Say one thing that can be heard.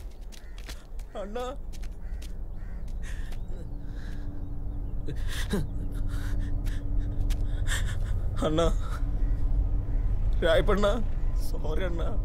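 A young man shouts in anguish.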